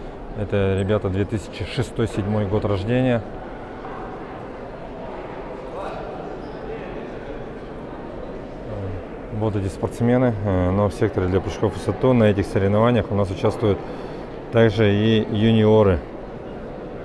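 A man talks loudly close by in a large echoing hall.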